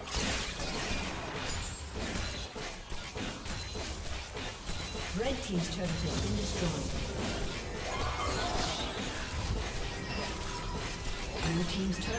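Video game spells and attacks whoosh and clash in a busy fight.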